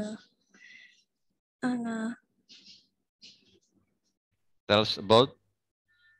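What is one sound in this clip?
A young woman speaks in short phrases over an online call.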